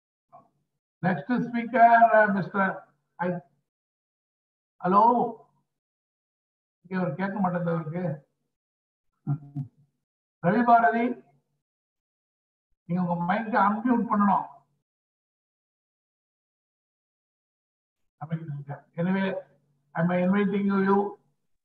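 An elderly man speaks calmly through an online call, in bursts with pauses.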